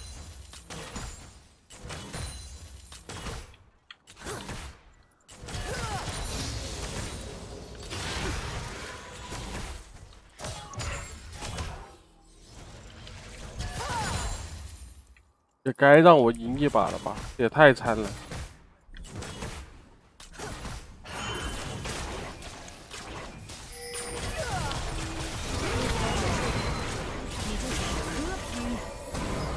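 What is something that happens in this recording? Game combat effects clash and zap.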